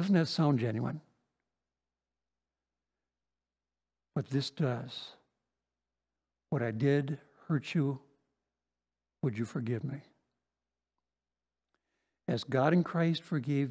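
An older man speaks calmly and deliberately into a microphone, with long pauses.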